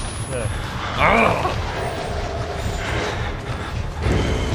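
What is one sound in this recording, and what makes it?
A young man laughs loudly through a microphone.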